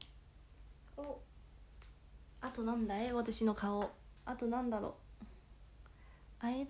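A young woman speaks brightly and with animation, close by.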